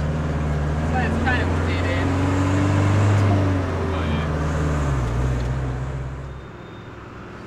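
Tyres roll on wet pavement.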